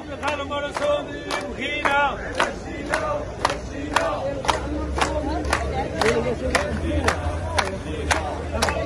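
A crowd of men chants loudly together.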